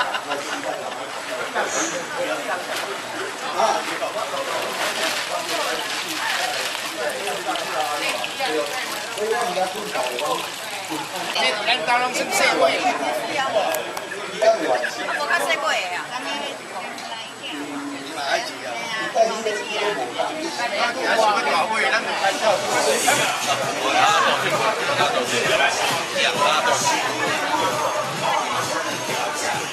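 A crowd of men and women chatter outdoors.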